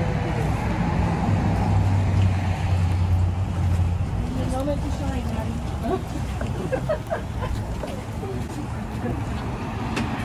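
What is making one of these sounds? Footsteps scuff on pavement as people walk.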